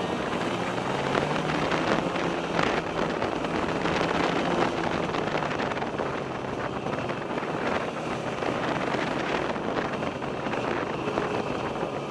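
Wind rushes loudly past.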